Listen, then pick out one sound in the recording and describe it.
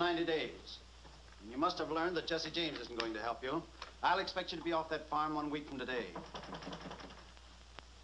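A man speaks urgently.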